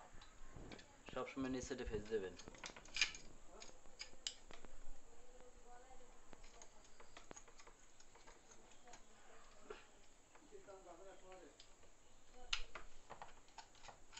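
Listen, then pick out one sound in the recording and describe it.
A screwdriver turns and scrapes against small metal screws.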